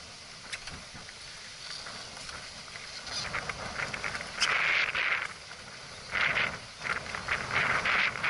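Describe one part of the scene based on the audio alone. Water splashes against a small boat's hull.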